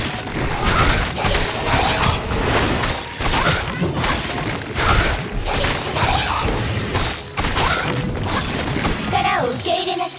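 Blades slash and hits crash in quick succession.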